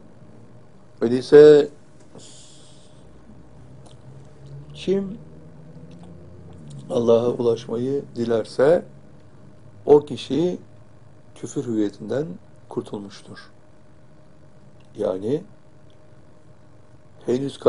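An elderly man speaks calmly and slowly, close to a microphone, with pauses.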